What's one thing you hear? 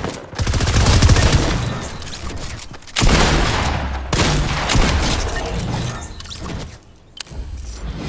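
Gunfire bursts loudly in rapid volleys.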